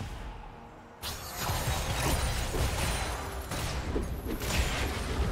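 Video game spells and attacks burst and crackle in a fight.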